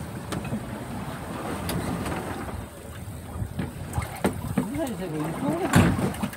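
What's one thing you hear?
A fishing boat's engine rumbles.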